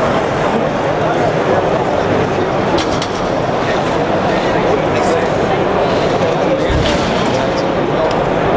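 A crowd of people chatters steadily in a large, busy hall.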